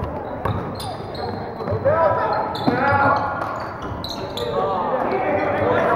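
Sneakers squeak on a hardwood floor in an echoing gym.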